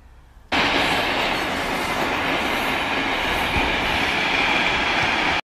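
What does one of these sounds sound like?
A freight train rumbles loudly past.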